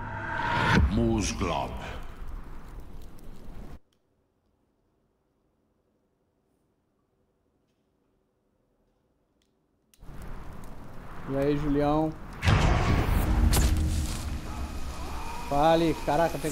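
A man speaks into a headset microphone now and then.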